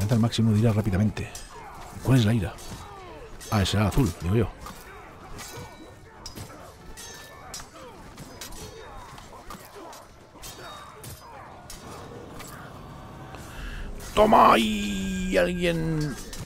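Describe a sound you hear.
Swords clash and strike in quick bursts.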